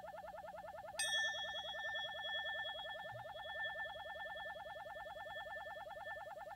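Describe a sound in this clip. A metal cymbal is struck once and rings out slowly.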